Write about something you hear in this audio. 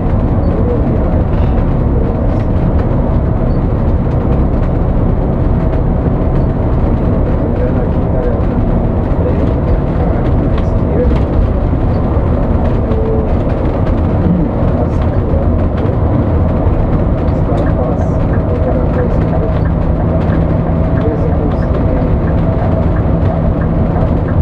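A bus engine drones steadily from inside the cab.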